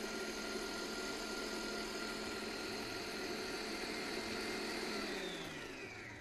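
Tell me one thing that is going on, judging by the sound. A stand mixer whirs steadily, then winds down and slows.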